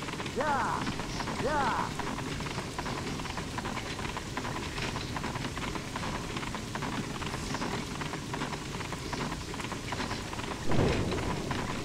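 Horses' hooves clatter and carriage wheels rattle at a gallop.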